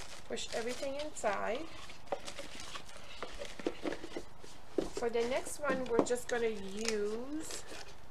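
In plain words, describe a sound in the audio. A small cardboard box is set down on a table with a soft tap.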